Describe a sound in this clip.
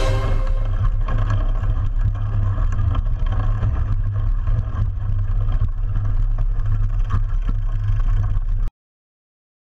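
Bicycle tyres rattle over a bumpy dirt trail.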